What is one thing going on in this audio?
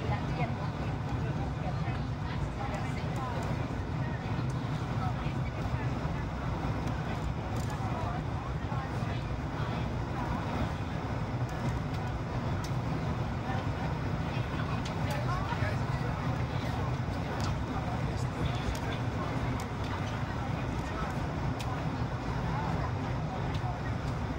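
Air rushes loudly past the airplane's hull.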